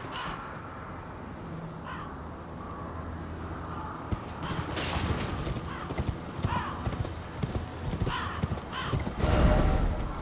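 A horse gallops with hooves clattering on rock.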